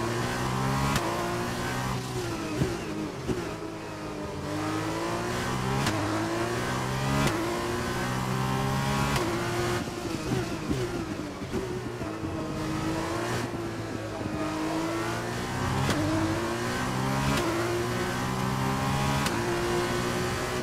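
Gear shifts click sharply between engine notes.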